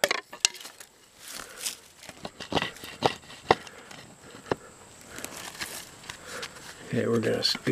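Plastic tape crinkles and rustles close by.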